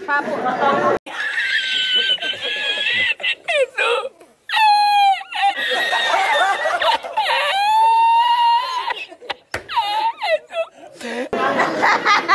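An older man laughs loudly and heartily.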